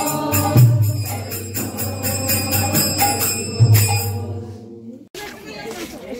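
A group of men and women sing a chant together.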